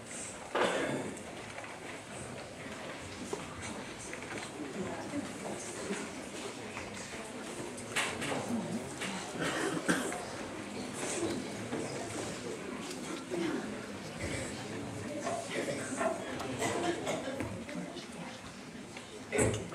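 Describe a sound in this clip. Children murmur and chatter.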